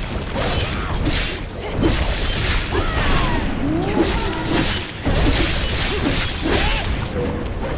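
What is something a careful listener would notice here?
A huge beast roars and growls.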